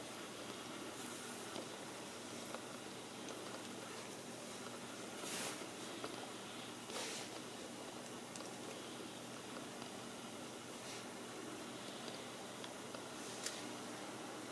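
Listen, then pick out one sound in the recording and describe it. Small bones click and rattle softly as they are handled.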